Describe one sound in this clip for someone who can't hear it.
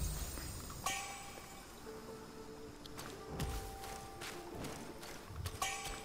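Footsteps tread over grass and leaves.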